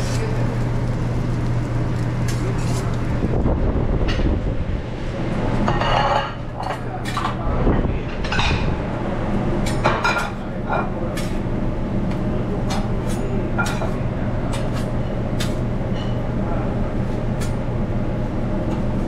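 A metal spatula scrapes and clicks against a hot griddle.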